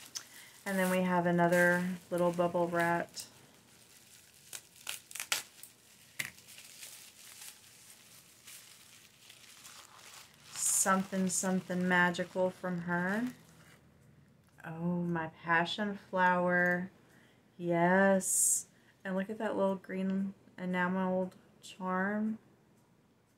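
A woman speaks calmly and close to a microphone, with pauses.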